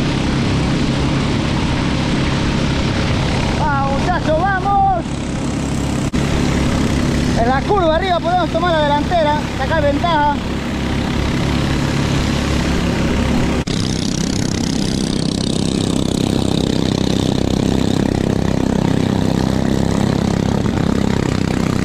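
A boat's outboard motor drones steadily.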